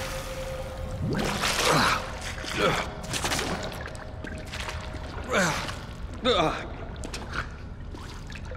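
A man gasps and groans heavily, close by.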